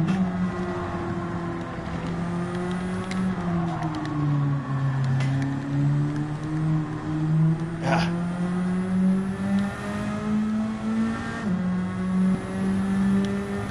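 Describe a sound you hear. A racing car engine hums steadily, dipping in pitch through a bend and rising again as it speeds up.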